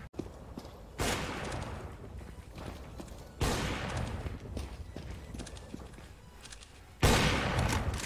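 Sniper rifle shots crack sharply, each followed by a ringing tail.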